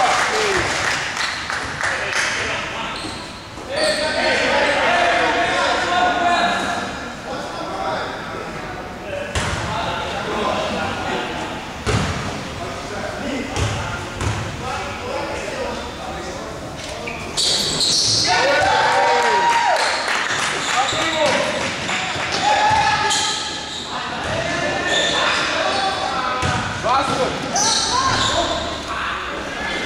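A crowd of young people cheers and calls out in a large echoing hall.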